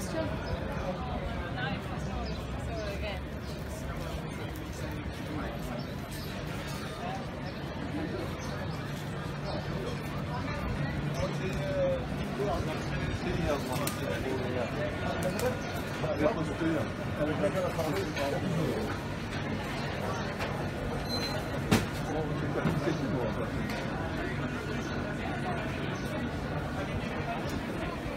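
A lively street crowd chatters all around outdoors.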